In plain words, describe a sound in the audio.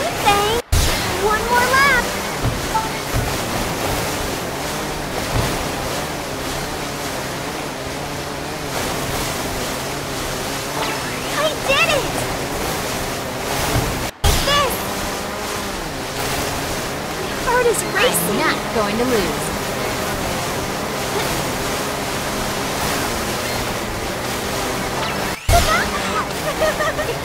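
A jet ski engine drones steadily while speeding over water.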